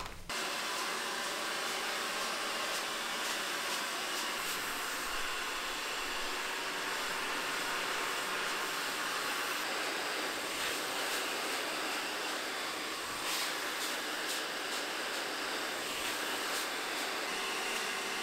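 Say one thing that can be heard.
A hair dryer blows with a steady whir.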